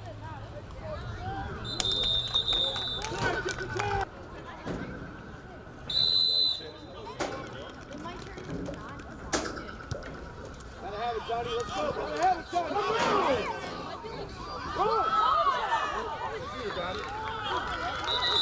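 Spectators nearby talk and shout outdoors.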